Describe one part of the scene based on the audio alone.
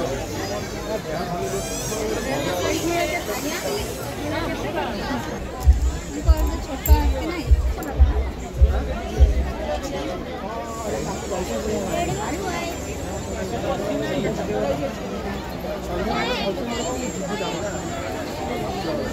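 Adult men chat casually nearby.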